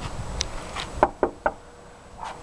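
A woman knocks on a door several times.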